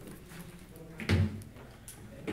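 A laptop is set down on a wooden lectern with a thud.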